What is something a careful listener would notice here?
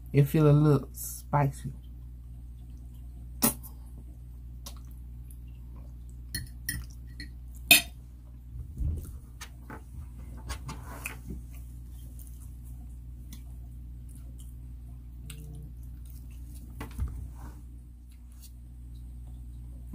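A woman chews and slurps noodles close to a microphone.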